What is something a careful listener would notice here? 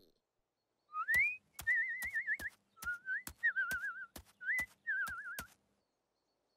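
A small bird chirps in quick trills.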